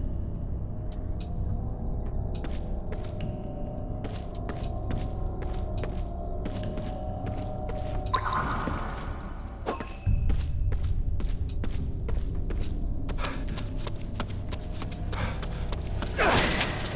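Footsteps splash on wet pavement.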